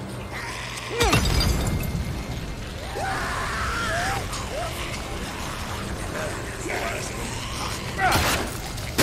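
A fire bursts up with a loud whoosh and roars.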